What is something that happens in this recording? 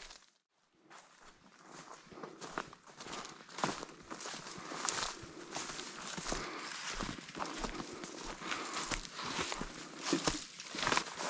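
Dry grass rustles and brushes against legs.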